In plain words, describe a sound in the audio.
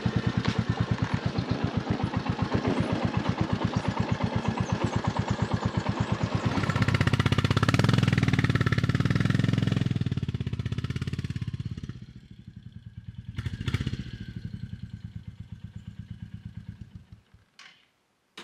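A motorcycle engine thumps steadily, then idles and cuts off.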